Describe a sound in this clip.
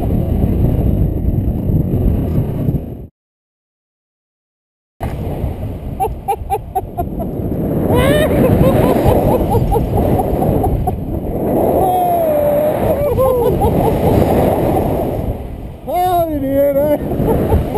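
Wind rushes loudly past a microphone outdoors.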